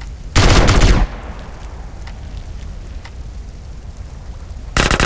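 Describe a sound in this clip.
Flames crackle and burn steadily.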